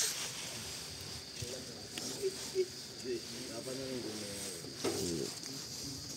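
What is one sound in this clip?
A fabric cover rustles as it is lifted.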